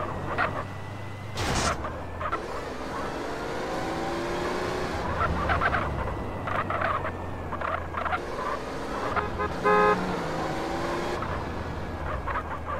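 A car engine revs and hums steadily as the car drives along.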